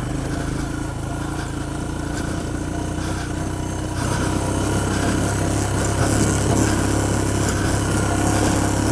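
A motorcycle engine runs and revs up as it pulls away.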